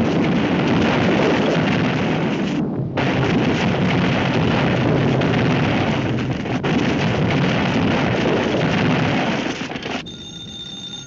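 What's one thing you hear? Rubble crumbles and crashes.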